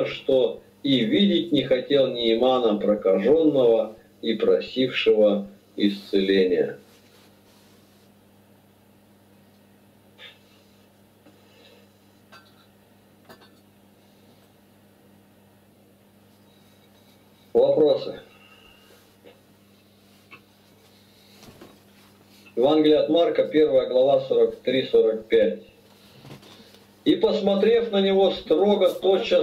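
A middle-aged man speaks calmly over an online call, with pauses.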